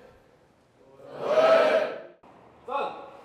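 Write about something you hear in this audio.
A group of young people shout back in unison.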